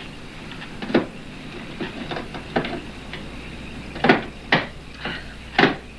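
Something knocks and rattles as a woman struggles with a door.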